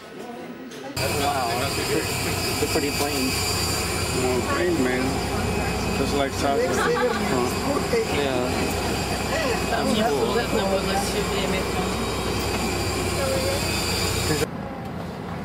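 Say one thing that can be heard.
Men and women chatter with animation close by.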